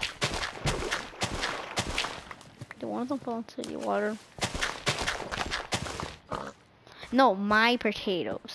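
Crops snap and crunch as they are broken in quick bursts.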